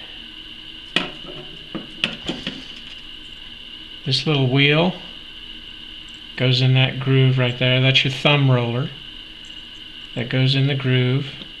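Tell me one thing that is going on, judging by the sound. Small metal parts click softly as they are handled.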